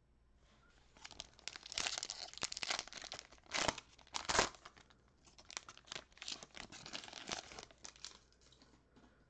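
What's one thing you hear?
A foil wrapper crinkles and tears as a pack is opened.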